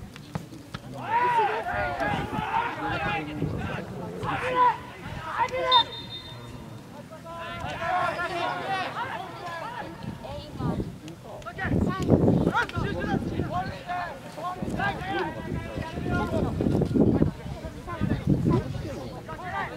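Spectators nearby talk and cheer.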